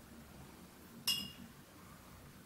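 A brush clinks against a paint palette.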